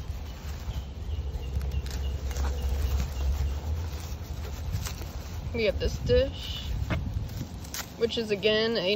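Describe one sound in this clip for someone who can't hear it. Plastic bubble wrap and tissue paper rustle and crinkle as they are handled.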